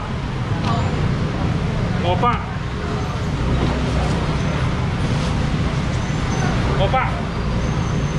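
A middle-aged man talks briefly nearby.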